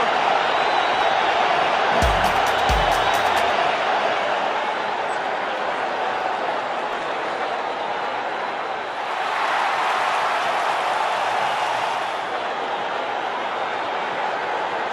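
A large stadium crowd cheers and roars steadily, swelling louder for a few seconds.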